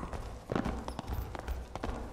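A torch flame crackles.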